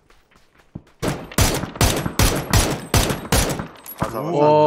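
Rapid gunshots ring out in quick succession.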